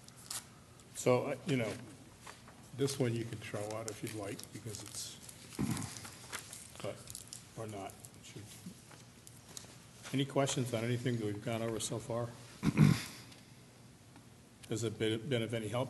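A man speaks calmly through a microphone in a room with some echo.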